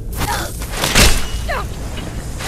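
A blade strikes a body.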